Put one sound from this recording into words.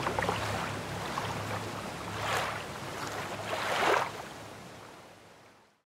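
Water ripples and laps gently.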